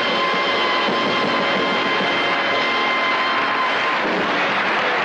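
A band plays lively music with guitar and drums.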